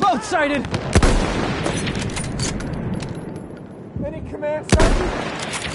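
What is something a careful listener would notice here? A rifle fires with loud, sharp cracks.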